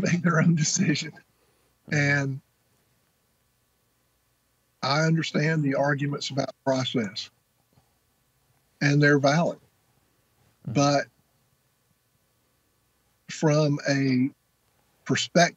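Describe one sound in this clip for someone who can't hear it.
A middle-aged man speaks calmly and close to the microphone, with pauses.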